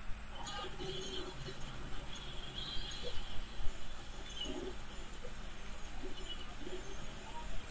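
Paint splatters in wet, squishy bursts.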